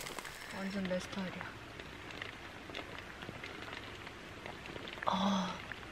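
A young woman slurps and chews food.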